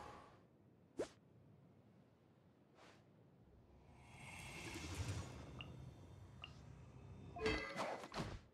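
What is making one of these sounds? Menu clicks tick softly.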